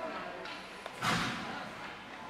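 A hockey stick smacks a puck.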